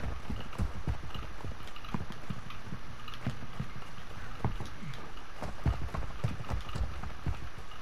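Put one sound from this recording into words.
Quick footsteps thud on the ground.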